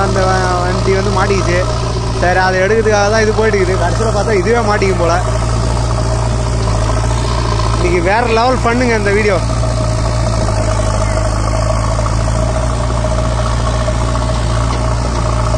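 A backhoe's diesel engine rumbles steadily.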